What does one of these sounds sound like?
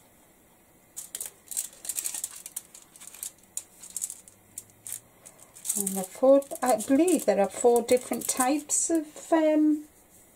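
Foil crinkles softly under pressing hands.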